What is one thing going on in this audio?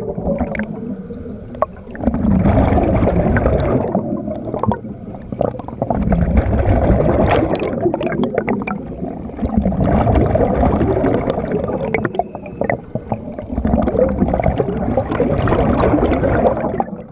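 Scuba bubbles rush and gurgle in loud bursts close by underwater.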